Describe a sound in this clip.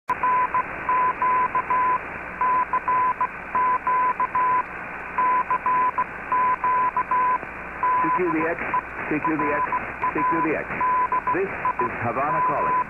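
A radio receiver hisses with steady static.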